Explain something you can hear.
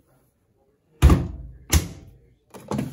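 A washing machine door closes with a thud.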